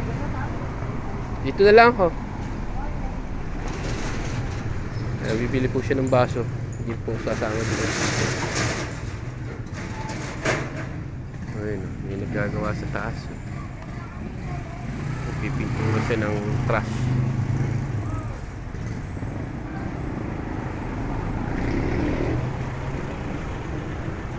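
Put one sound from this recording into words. Street traffic hums steadily outdoors.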